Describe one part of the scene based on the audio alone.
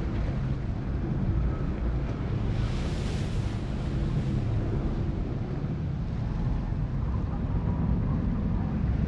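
A ship's engines rumble steadily.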